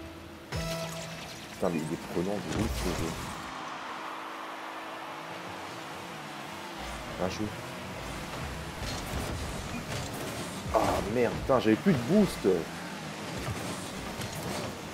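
Game cars hum and roar as they boost.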